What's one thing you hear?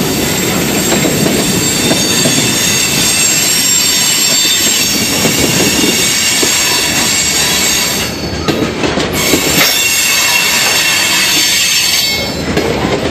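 A long freight train rolls past, its steel wheels rumbling and clattering on the rails.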